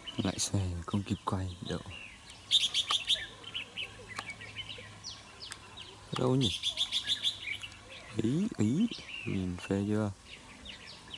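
Small birds chirp and trill in the trees.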